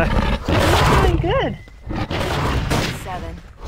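A large creature roars loudly.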